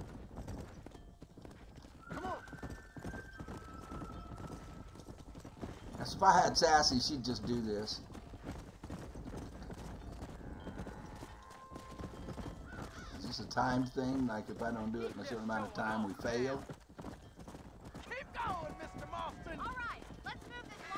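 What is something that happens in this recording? A horse's hooves thud at a gallop on a dirt track.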